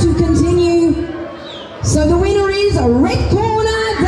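A woman announces through a microphone over loudspeakers.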